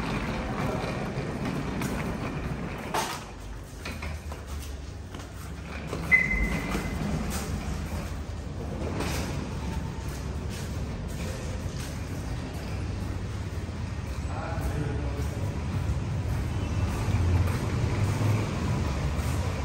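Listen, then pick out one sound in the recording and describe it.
Suitcase wheels rumble across a concrete floor.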